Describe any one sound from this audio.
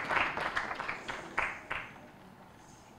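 A crowd claps loudly.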